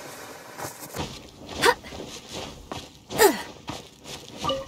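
Scrabbling steps and thuds sound on rock during a climb.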